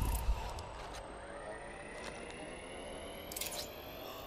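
A game's healing kit hums with a slowly rising tone.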